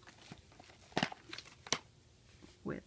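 A plastic disc case snaps open with a click.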